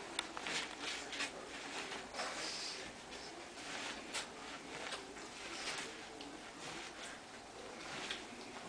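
A small dog sniffs and snuffles at a paper booklet.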